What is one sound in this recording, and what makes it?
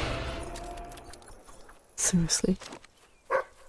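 A magic blast bursts with a sharp crack.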